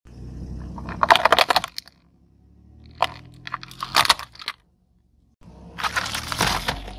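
Plastic cracks and crunches as a car tyre rolls over it.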